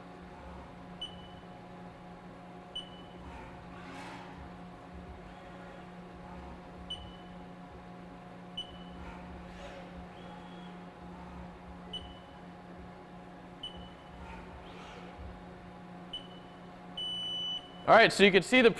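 A machine gives short beeps now and then.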